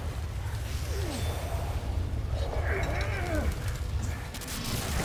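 A monster growls deeply.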